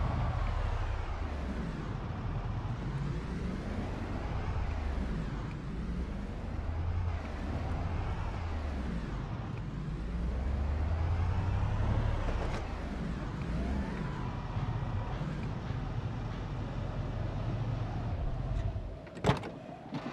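A van engine rumbles steadily as it drives.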